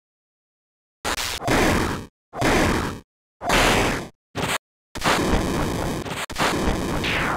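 Heavy blows thud and crash in quick bursts.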